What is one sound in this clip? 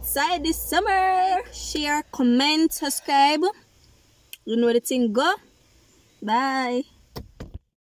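A young girl talks excitedly close to the microphone.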